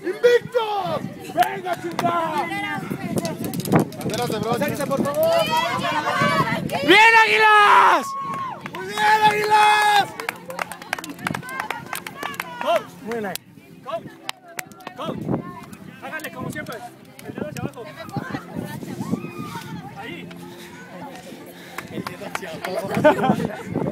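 A crowd of young people talks and shouts outdoors.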